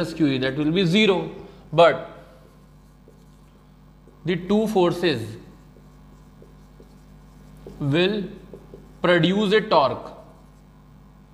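A man speaks calmly in short phrases, explaining.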